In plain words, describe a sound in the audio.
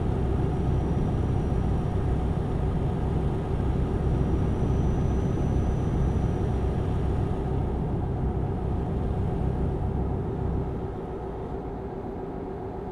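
A truck engine hums steadily while driving, easing off toward the end.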